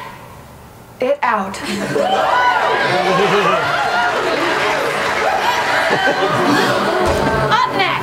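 A woman speaks intensely through a microphone.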